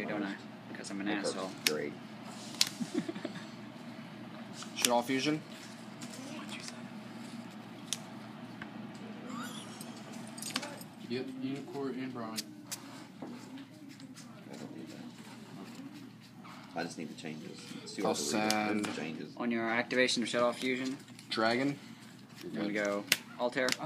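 Playing cards slap and tap on a table.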